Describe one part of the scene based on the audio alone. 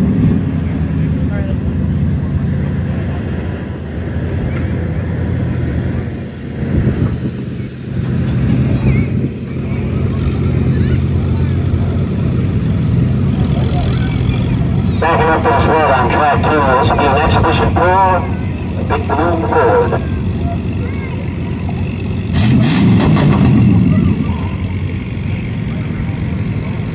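A pickup truck engine roars steadily under heavy load.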